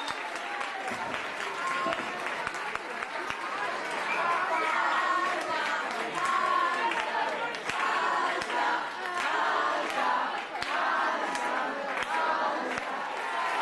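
A young girl claps her hands close by.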